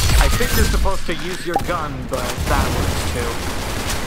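A gun fires with a sharp bang.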